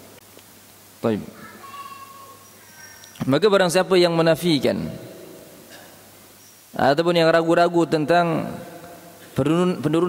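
A man chants in a melodic voice through a microphone, echoing in a large hall.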